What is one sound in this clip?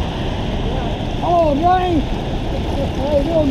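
An elderly man talks casually nearby.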